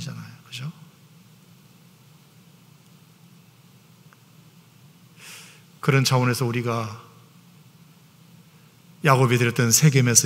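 An older man speaks calmly into a microphone, with pauses.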